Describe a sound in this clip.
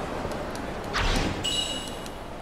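A bright chime rings out with a sparkling shimmer.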